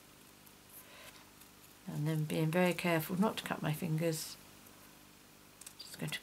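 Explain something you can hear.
Scissors snip through thin paper.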